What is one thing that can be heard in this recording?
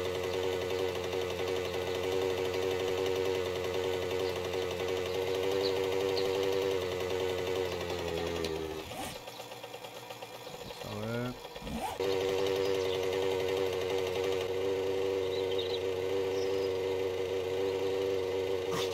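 A motorbike engine hums steadily as the bike rides along.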